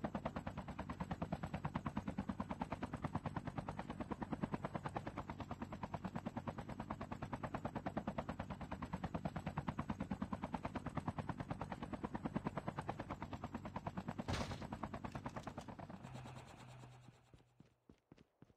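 A helicopter's rotor thumps rapidly and steadily, then fades away.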